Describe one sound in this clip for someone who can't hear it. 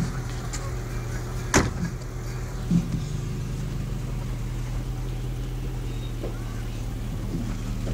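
An engine idles steadily nearby.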